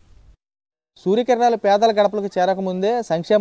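A young man speaks steadily into a microphone, reporting.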